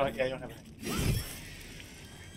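A blade strikes a creature with a sharp hit.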